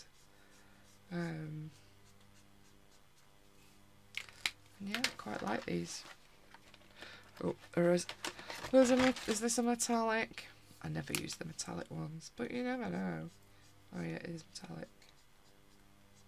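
A marker tip scratches softly across paper.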